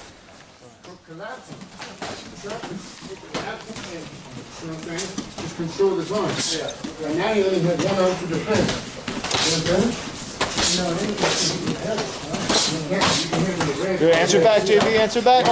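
Gloved fists smack sharply against padded mitts again and again.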